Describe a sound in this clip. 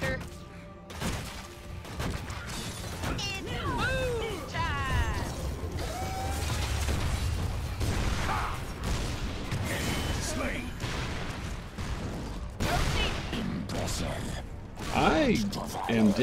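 Video game battle effects crash, zap and thump in quick bursts.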